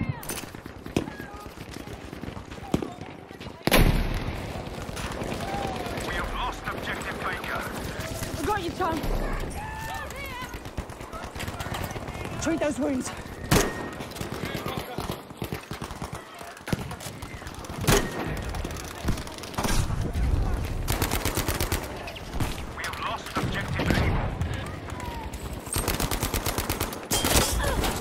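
Rifle shots crack sharply, some in quick bursts.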